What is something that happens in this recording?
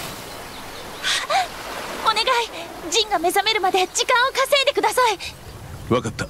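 A young woman speaks quickly and with animation.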